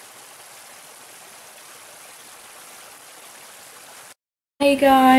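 A small stream rushes and splashes over rocks.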